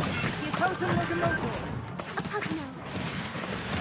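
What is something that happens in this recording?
Magic blasts burst with whooshing bangs.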